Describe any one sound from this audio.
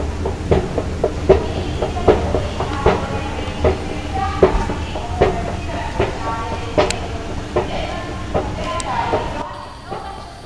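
An escalator thumps with a steady, drum-like beat.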